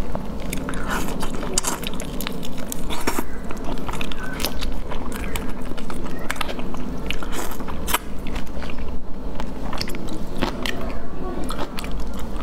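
A young woman slurps and sucks loudly while eating, close to a microphone.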